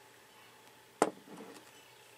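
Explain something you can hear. A cup is set down with a knock.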